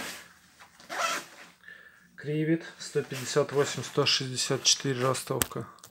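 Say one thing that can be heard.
Nylon fabric rustles and crinkles as hands smooth out a jacket.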